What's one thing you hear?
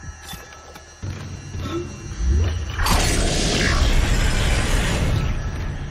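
A massive metal door rumbles and grinds open.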